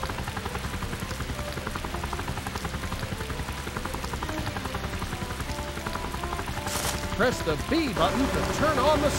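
Helicopter rotor blades chop rapidly and steadily.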